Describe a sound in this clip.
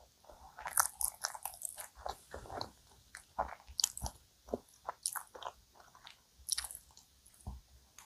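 Pastry wrappers crinkle and rustle close to a microphone.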